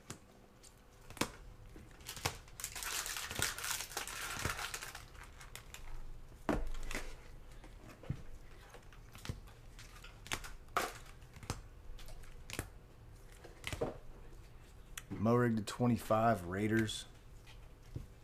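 Hard plastic card cases click and tap as they are handled.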